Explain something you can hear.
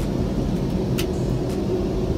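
A hinged fold-down seat clicks as it is lowered.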